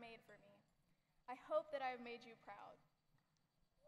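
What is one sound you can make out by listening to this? A young woman speaks clearly into a microphone in a large hall.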